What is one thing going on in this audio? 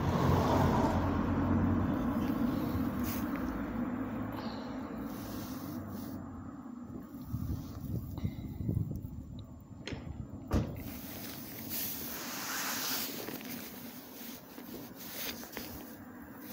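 A man draws on a cigarette and breathes out smoke close by.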